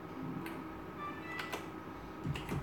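A slot machine plays a short electronic jingle for a win.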